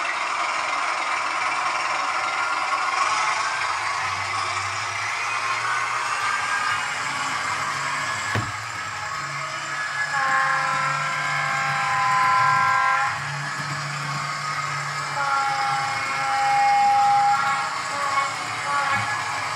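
A small electric model train motor hums and whines as the train runs along the track.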